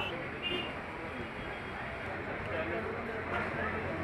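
A metal scoop scrapes ice cream into a plastic cup.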